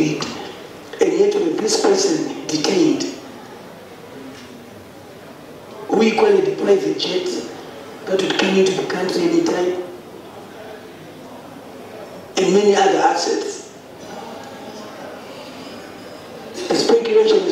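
A man speaks firmly into a microphone, in bursts with pauses.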